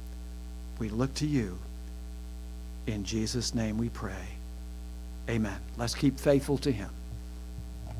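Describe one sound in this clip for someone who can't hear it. A middle-aged man speaks calmly into a microphone in short phrases, with pauses.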